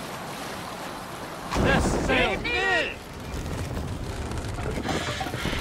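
Oars splash through calm water as a boat is rowed.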